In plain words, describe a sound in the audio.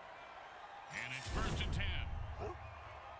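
Football players thud into each other in a tackle.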